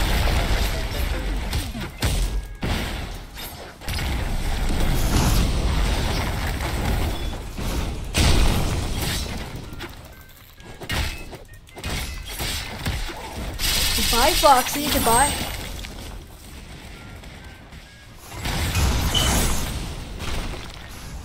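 Heavy blows thud and rubble crashes.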